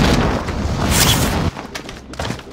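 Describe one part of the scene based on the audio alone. Wind rushes loudly past, as if falling through the air.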